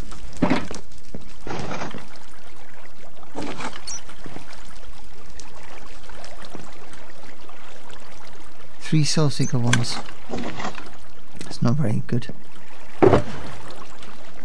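A man speaks casually and close up through a headset microphone.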